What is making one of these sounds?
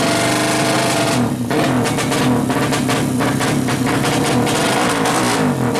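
A motorcycle engine revs loudly and sputters close by.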